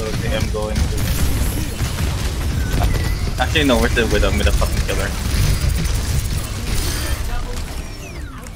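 A heavy gun fires rapid rattling bursts.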